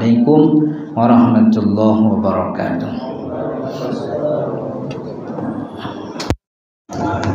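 A young man chants into a microphone in a melodic voice.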